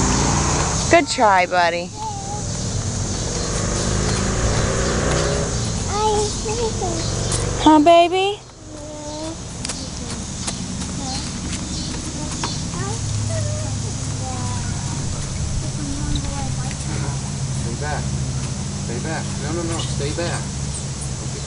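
Small children squeal and babble nearby.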